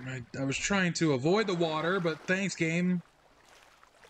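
A swimmer splashes through water.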